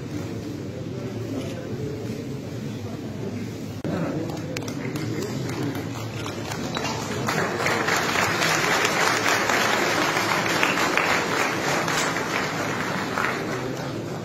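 A crowd of men and women murmurs and chatters in the background.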